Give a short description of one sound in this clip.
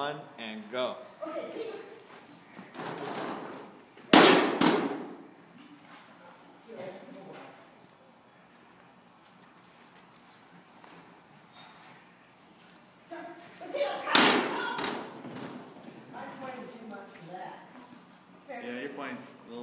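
A woman calls out commands to a dog with animation.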